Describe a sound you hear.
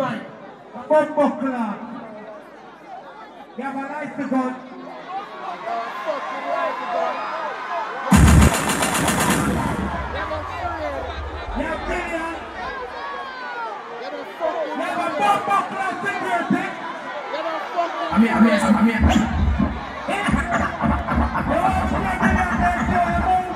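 A man sings and chants loudly into a microphone over loudspeakers.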